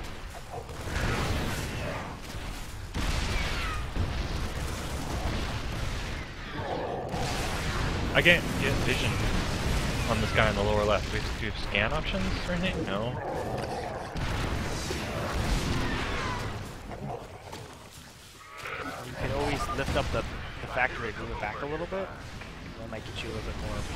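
Game weapons fire in rapid bursts.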